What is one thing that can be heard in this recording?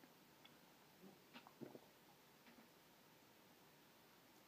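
A man gulps down a drink close by.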